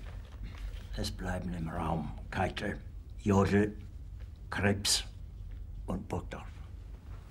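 An elderly man speaks quietly and grimly.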